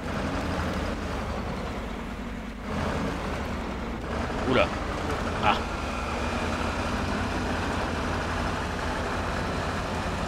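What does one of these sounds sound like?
Tyres crunch over gravel and rocks.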